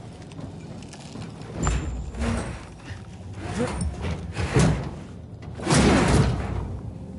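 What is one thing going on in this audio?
A metal hatch creaks open.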